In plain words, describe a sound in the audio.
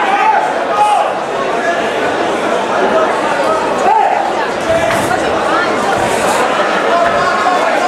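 Kicks and punches thud against bodies.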